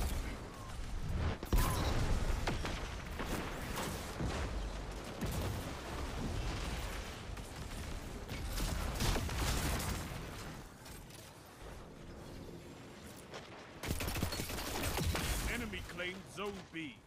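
Rapid gunfire bursts and crackles.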